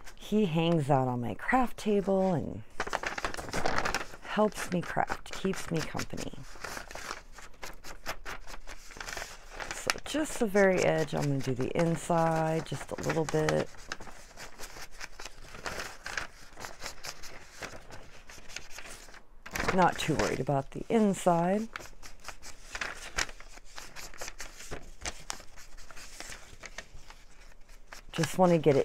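A foam ink applicator rubs and dabs against paper.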